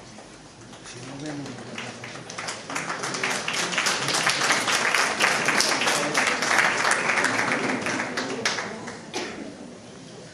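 An audience claps and applauds loudly, then fades.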